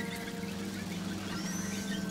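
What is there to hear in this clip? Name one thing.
A sling whirls through the air.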